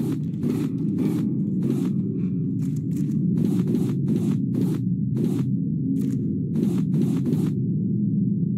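Short pickup clicks sound as scrap is gathered.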